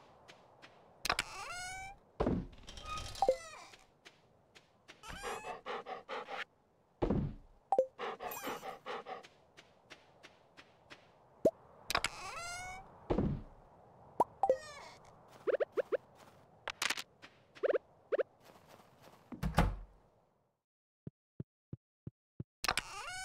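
Short electronic blips and chimes sound as a game menu opens and items are picked.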